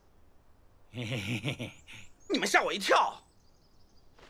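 A man speaks in a deep, cheerful voice.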